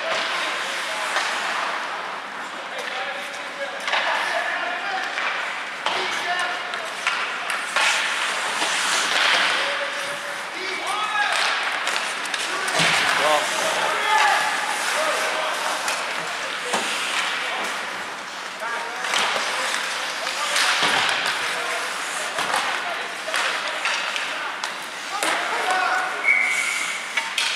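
Players shout to each other across the rink.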